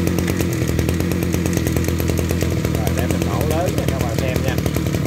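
A small two-stroke engine idles with a fast, steady putter, close by.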